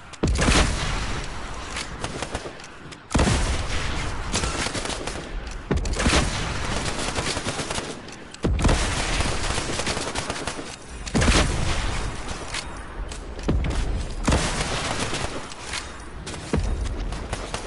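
Rocket blasts boom loudly again and again.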